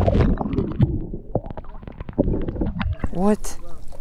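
Water splashes and drips as a wire trap is hauled out of the water.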